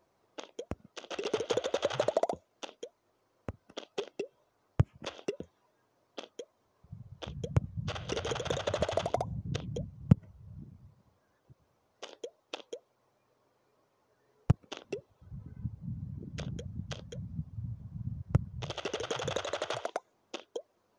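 Platforms shatter and fly apart with a whooshing burst.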